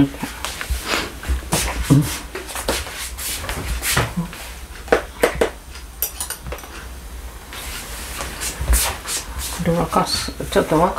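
Dishes and containers clink and knock on a table.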